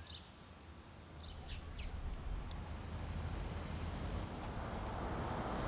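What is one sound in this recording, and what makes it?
A car drives slowly past on a street.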